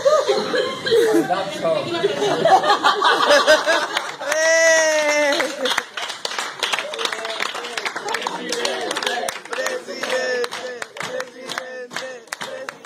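A group of adults talk and laugh loudly nearby.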